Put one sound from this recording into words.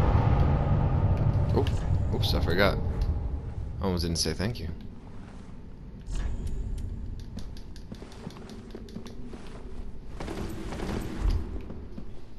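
Heavy footsteps clank on a stone floor.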